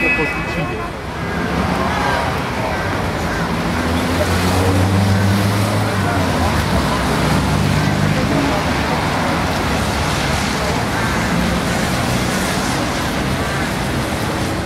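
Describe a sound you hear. Cars drive past close by on a busy street.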